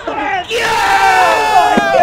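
A man yells loudly close by.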